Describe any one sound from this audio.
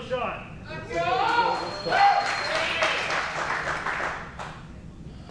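A crowd cheers and applauds in a large room.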